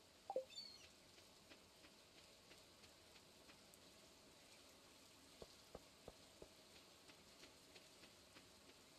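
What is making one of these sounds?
Footsteps tap lightly on the ground.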